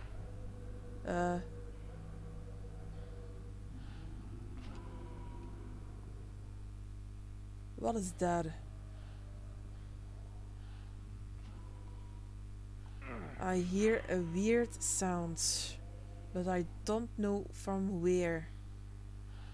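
A woman speaks into a close microphone, calmly and in short bursts.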